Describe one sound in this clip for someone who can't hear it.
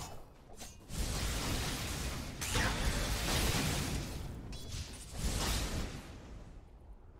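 Lightning spells crack and zap in a video game battle.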